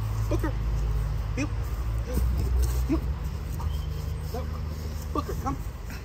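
Footsteps shuffle on dry grass.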